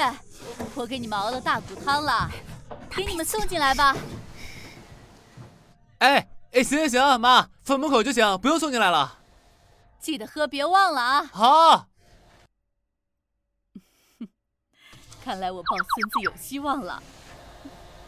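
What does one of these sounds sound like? A middle-aged woman calls out warmly from nearby.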